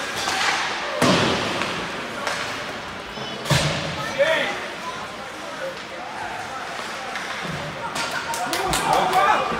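A puck or stick knocks sharply against the boards.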